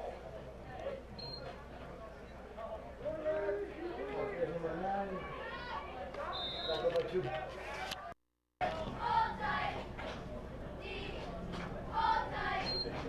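A crowd of young people shouts and cheers from close by outdoors.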